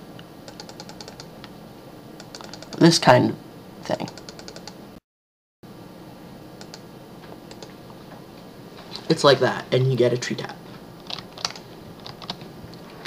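Soft mouse clicks tap now and then.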